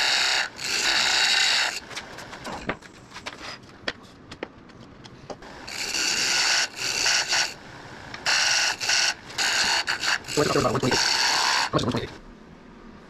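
A lathe gouge scrapes and shaves spinning wood in loud bursts.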